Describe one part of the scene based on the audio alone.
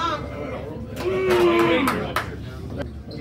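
A man yells loudly close by.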